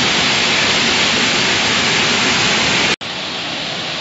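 A large waterfall roars as it plunges into a pool.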